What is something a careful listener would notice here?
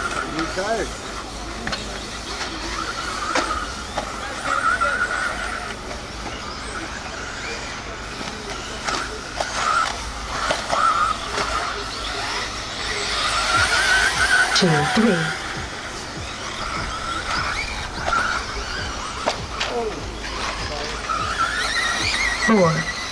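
Model car wheels thud and clatter on the dirt jumps.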